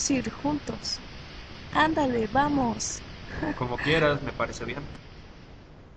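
A young woman talks and laughs softly up close.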